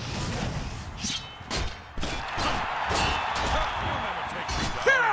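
Swords clash with sharp metallic clangs.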